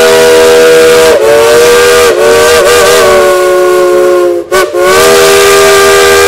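A steam locomotive's whistle blows loudly in long blasts.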